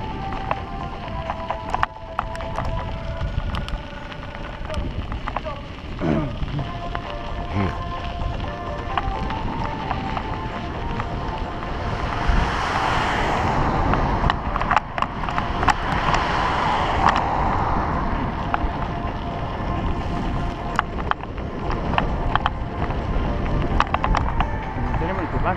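Bicycle tyres crunch over gravel and dirt.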